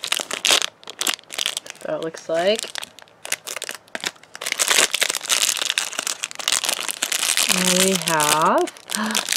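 Thin plastic wrapping crinkles and rustles as hands tear it open.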